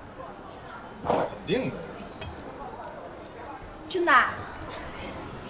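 A man speaks briefly in reply.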